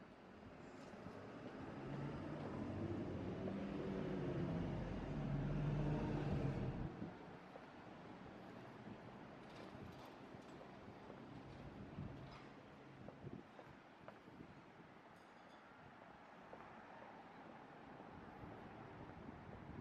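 Footsteps tap on a paved sidewalk.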